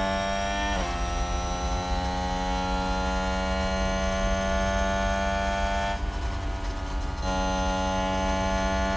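A racing car engine whines at high speed, shifting gear and briefly easing off before roaring again.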